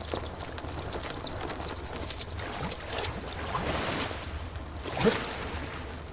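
Small coins jingle and clink as they are picked up.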